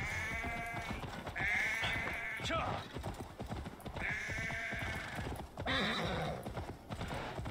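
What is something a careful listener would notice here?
Sheep bleat loudly nearby.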